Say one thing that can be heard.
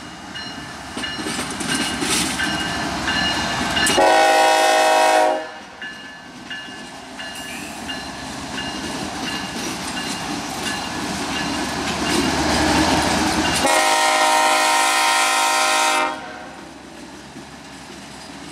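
A diesel locomotive rumbles as it rolls slowly past close by.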